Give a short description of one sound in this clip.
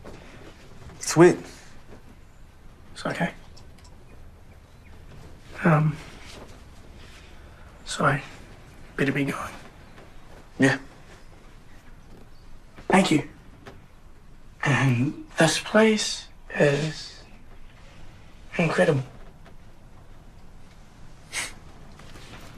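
A man answers in short, hesitant phrases, close by.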